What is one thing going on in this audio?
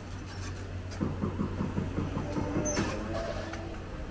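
A motor scooter passes close by.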